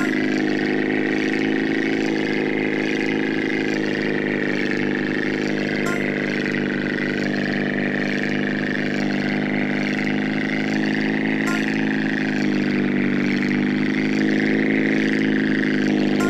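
A propeller plane's engine drones steadily, rising and falling slightly in pitch.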